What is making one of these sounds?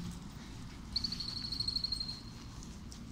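A dog yelps in short, high squeaks.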